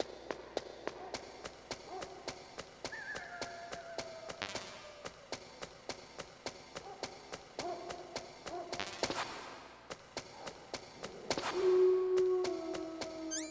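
Footsteps tap quickly and steadily.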